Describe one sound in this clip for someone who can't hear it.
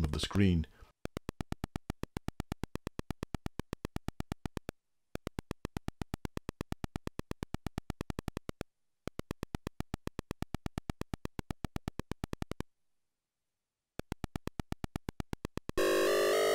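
A retro computer game gives out rapid, even electronic ticks as a figure runs.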